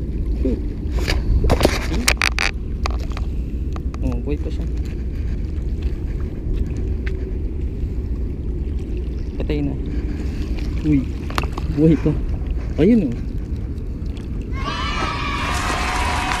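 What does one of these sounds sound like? Small waves lap against a stone wall.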